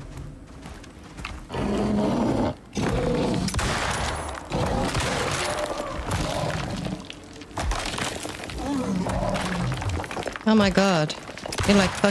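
A bear growls and roars close by.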